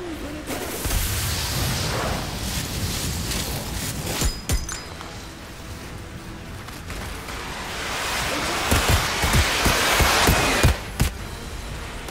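Gunshots crack in the distance.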